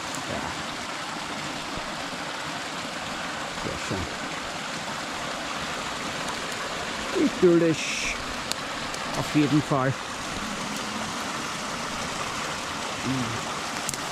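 Water splashes steadily from a pipe into a stream.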